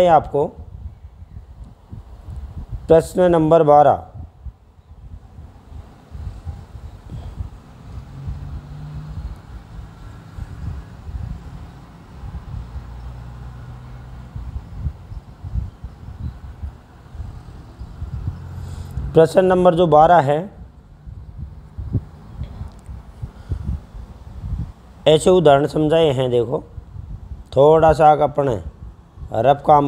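A middle-aged man speaks calmly into a microphone, in short bursts with long pauses.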